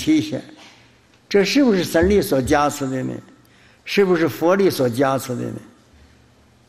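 An elderly man speaks calmly and slowly into a microphone, with pauses between phrases.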